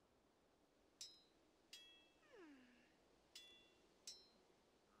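Bright, ringing game sound effects chime several times.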